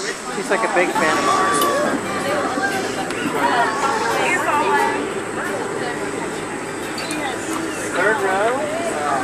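A crowd of adults chatters nearby.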